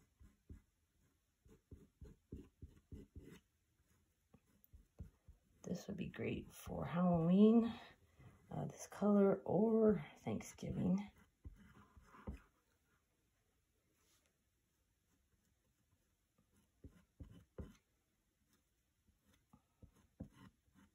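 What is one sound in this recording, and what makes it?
Fingertips rub and tap lightly against glass.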